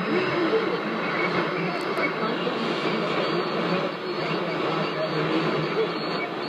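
A radio plays a busy, hissing broadcast through its loudspeaker.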